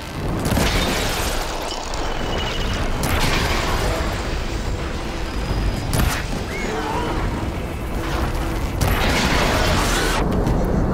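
A huge machine creature roars and screeches.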